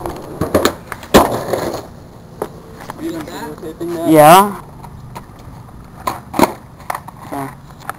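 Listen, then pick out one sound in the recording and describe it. Skateboard wheels roll and clatter on pavement.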